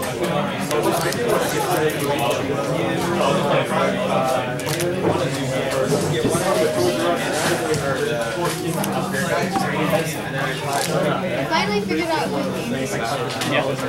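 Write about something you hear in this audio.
Playing cards rustle and slide as they are shuffled by hand.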